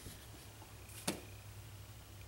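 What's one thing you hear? A small wooden figure is set down on a table with a light knock.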